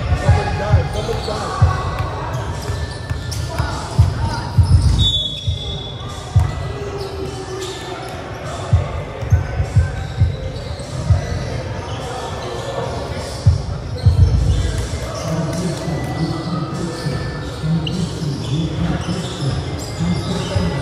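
Several young men call out to each other across an echoing hall.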